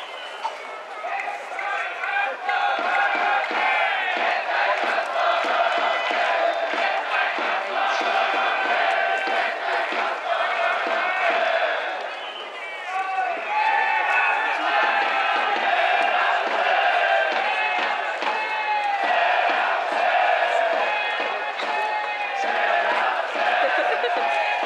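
A large stadium crowd chants and sings in unison.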